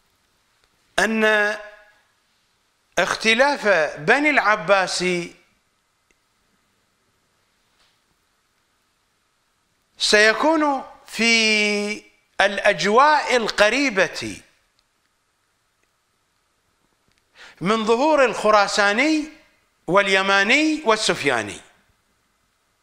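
A middle-aged man speaks with animation into a close microphone, in bursts with pauses.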